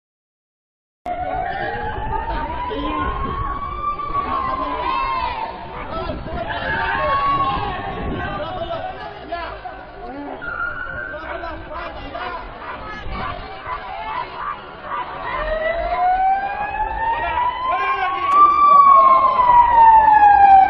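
A crowd shouts and clamours in a narrow street.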